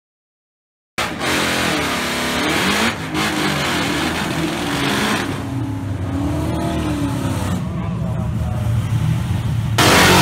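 Tyres screech as a car spins its wheels.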